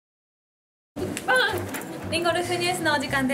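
Two young women talk cheerfully and laugh into microphones.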